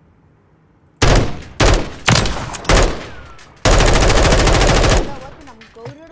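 Gunshots fire in loud, fast bursts with echoing cracks.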